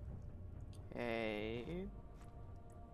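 A young man makes a short drawn-out vocal sound close to a microphone.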